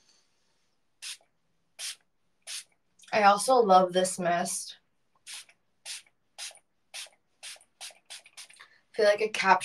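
A spray bottle hisses in short, repeated bursts.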